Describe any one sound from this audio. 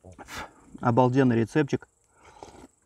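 A man hums with pleasure close by.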